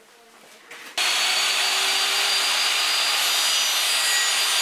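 A table saw runs with a loud, steady whine.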